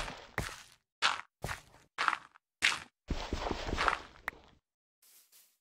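Gravelly blocks crunch in quick bursts as they are dug away in a game.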